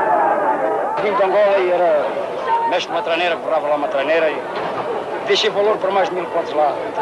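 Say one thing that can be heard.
A middle-aged man speaks with animation, close by.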